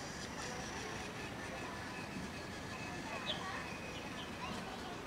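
A toy train's motor whirs softly as it runs.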